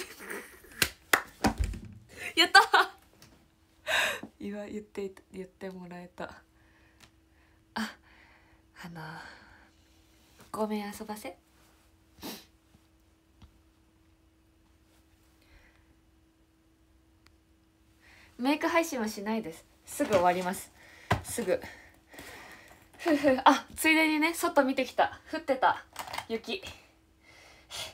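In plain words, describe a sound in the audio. A young woman talks cheerfully and laughs close to a microphone.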